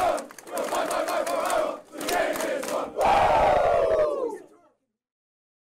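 A crowd of young men chants and shouts loudly in an echoing room.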